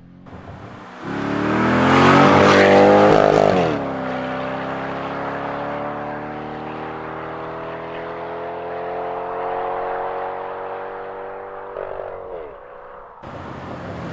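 A sports car engine roars loudly as the car accelerates past and then fades into the distance.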